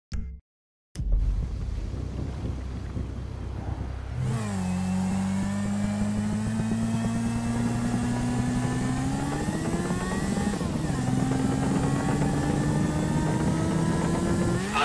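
A motorcycle engine idles, then revs up and down as the bike rides off.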